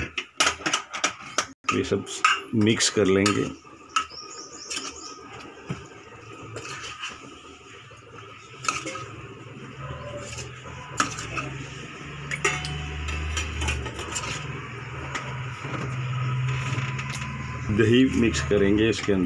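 A spoon stirs a thick vegetable mixture in a steel pot, scraping and clinking.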